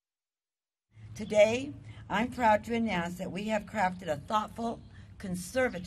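An older woman speaks steadily into a microphone.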